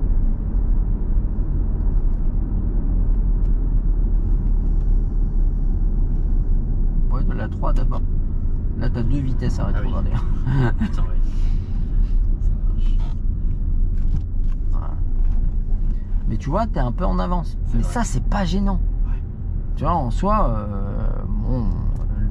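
A car engine hums and tyres rumble steadily on the road.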